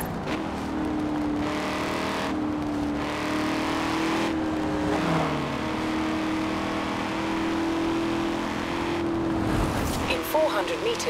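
A sports car engine roars steadily at high revs.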